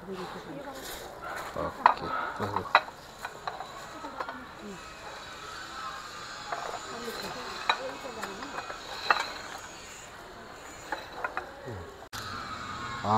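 Young people talk quietly nearby.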